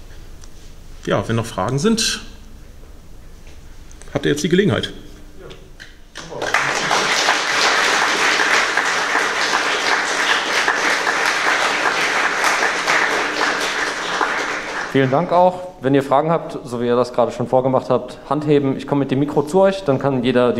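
A man speaks into a microphone in a large room, calmly and with pauses.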